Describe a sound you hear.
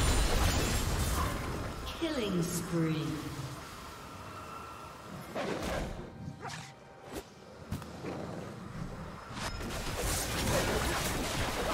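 Loud impacts thump as fighters clash.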